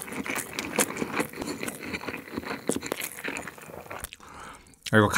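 A young man chews food noisily close to a microphone.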